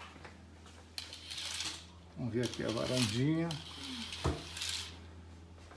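Fabric curtains rustle and swish close by.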